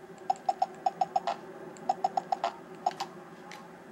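Phone keypad buttons beep in quick bursts.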